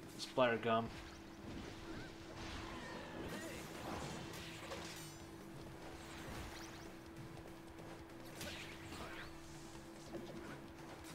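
Game weapons splash and whoosh in quick bursts.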